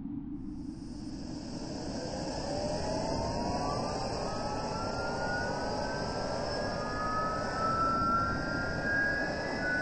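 A jet engine whines, rising steadily in pitch as it spools up.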